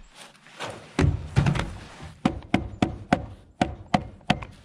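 Wooden boards knock and clatter.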